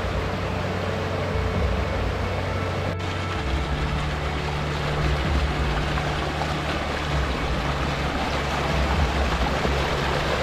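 A mountain stream rushes and splashes over rocks nearby.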